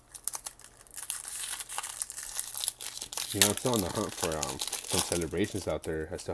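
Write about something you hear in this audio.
A foil wrapper crinkles and tears as it is ripped open.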